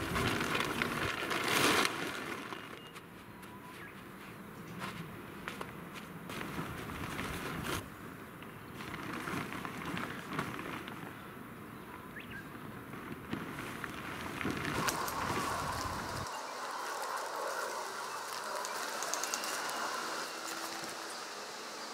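Tent fabric rustles and crinkles as it is folded up.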